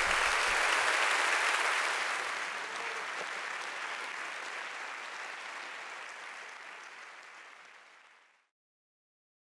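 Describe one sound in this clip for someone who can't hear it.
A large audience applauds loudly in a big hall, then the applause slowly fades away.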